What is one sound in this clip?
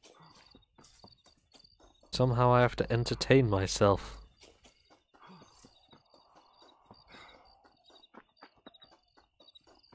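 Footsteps run quickly through dry grass.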